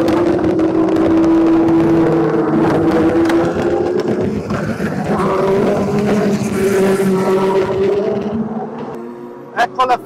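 Race car engines roar loudly as cars speed past close by.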